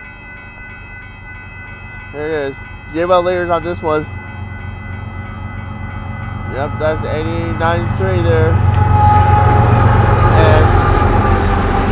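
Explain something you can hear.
A railroad crossing bell rings steadily.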